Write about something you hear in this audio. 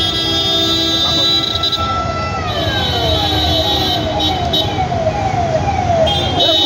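Sirens wail in quick, repeating falling sweeps close by.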